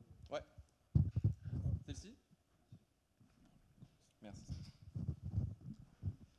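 A second man speaks quietly, off the microphone.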